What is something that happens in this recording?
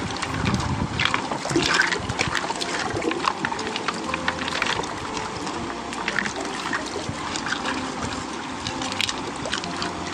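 Water sloshes and splashes in a shallow pan.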